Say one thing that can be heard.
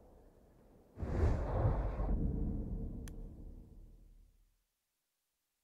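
Wind rushes loudly high in the air and slowly fades away.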